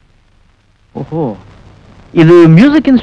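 A man calls out loudly with animation.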